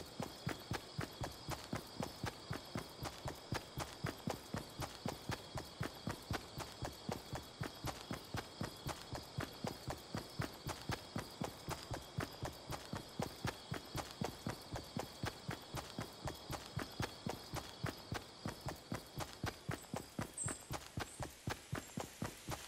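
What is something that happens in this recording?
Footsteps run quickly and steadily over grass.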